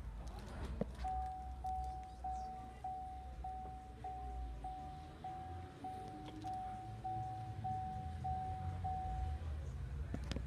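A car's warning chime beeps steadily and repeatedly.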